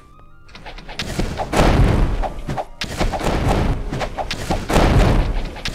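Loud game combat effects crash and roar.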